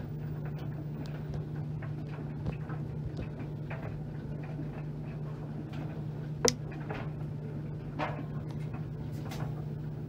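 Laundry thumps and clicks against the inside of a turning drum.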